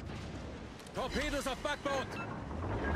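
A shell explodes on a ship.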